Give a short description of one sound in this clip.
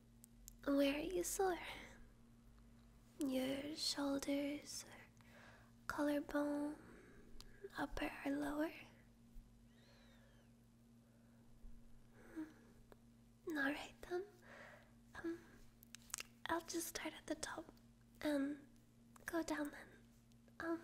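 A young woman speaks softly and intimately, close to a microphone.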